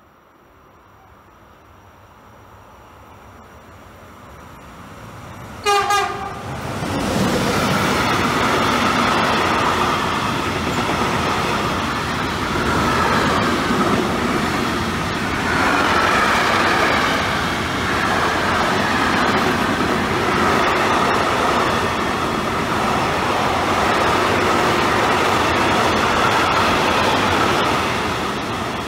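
A freight train approaches and rumbles loudly past on the rails.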